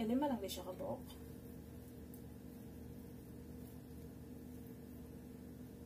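A metal fork scrapes and clinks against a metal pot.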